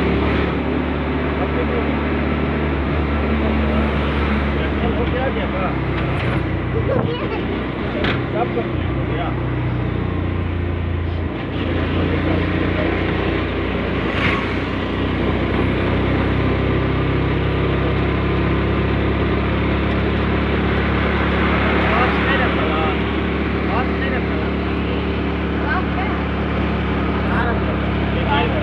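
A vehicle's engine hums steadily from inside while driving along a road.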